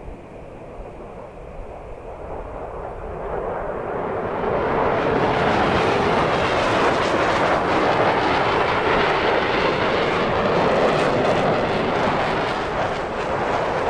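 A jet engine roars, growing louder as the plane approaches overhead.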